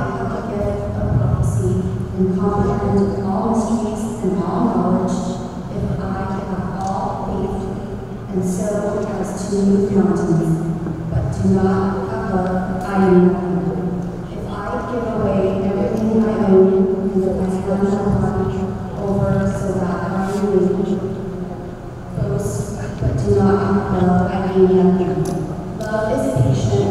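A young woman reads aloud calmly through a microphone in a large echoing hall.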